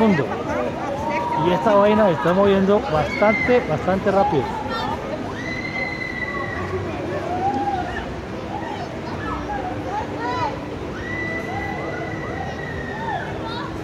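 Riders on a swinging carousel scream and shout with excitement.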